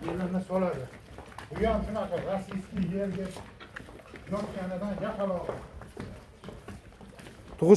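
Cow hooves clop on concrete.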